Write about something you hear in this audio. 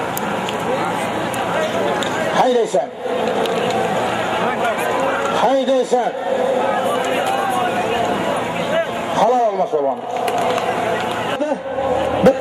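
A crowd of men shouts and calls outdoors.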